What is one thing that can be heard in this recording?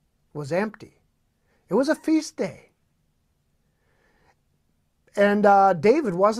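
A man speaks calmly and expressively into a close microphone, in short phrases with pauses.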